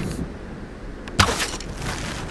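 A bow twangs as an arrow is loosed.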